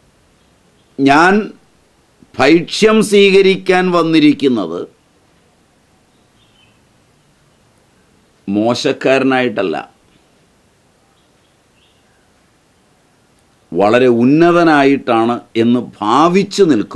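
An elderly man speaks close by, in animated bursts with long pauses.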